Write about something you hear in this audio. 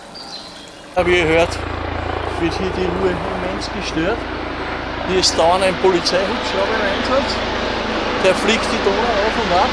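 An older man talks calmly and close by, outdoors.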